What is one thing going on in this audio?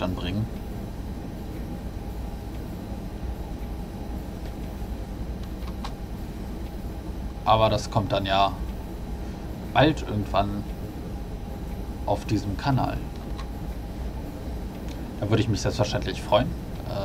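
A train engine hums and rumbles steadily while rolling along the tracks.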